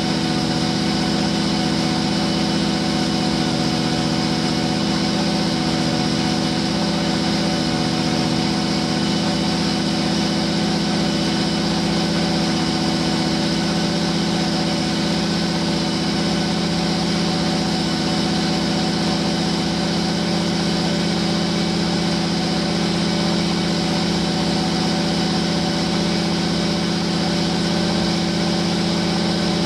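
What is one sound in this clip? A truck engine idles loudly and steadily nearby.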